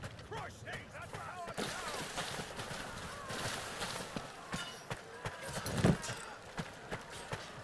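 Quick footsteps thud over grass and rock.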